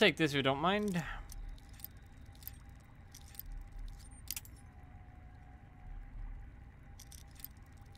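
A lock pick scrapes and clicks inside a lock.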